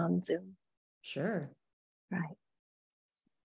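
A middle-aged woman says a few words over an online call.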